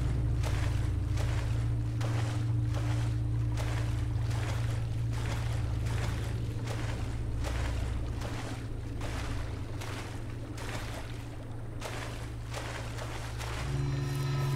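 Footsteps tread steadily on wet ground.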